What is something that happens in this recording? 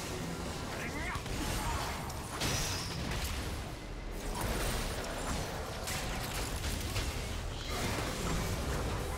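Game spell effects whoosh and crackle in a fast fight.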